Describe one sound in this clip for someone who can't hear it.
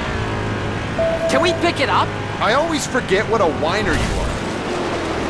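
Tyres skid and screech on dirt.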